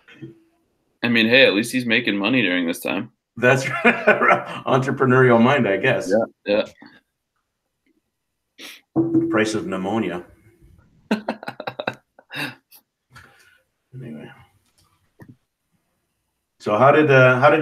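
A young man talks casually over an online call.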